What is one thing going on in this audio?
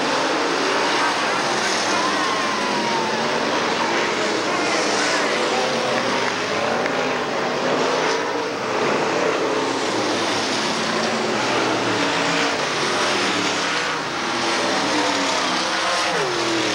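Race car engines roar loudly as cars speed past.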